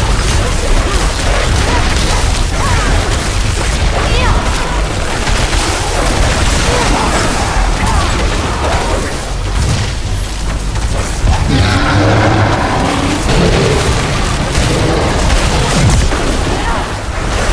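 Magic spells crackle and explode in rapid bursts.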